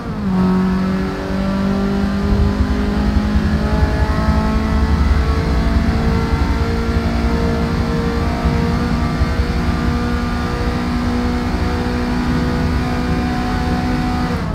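A car engine roars steadily at high revs, its pitch climbing slowly.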